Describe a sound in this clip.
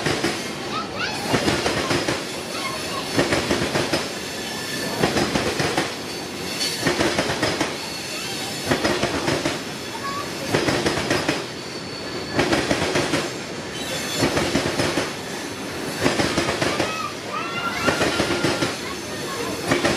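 A freight train rolls past close by, its wheels clacking rhythmically over rail joints.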